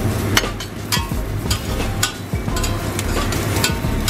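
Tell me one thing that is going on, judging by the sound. Vegetables splash into water in a pot.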